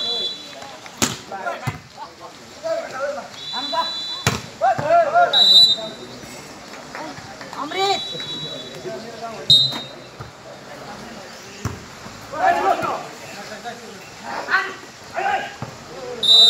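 A ball thuds as players hit it.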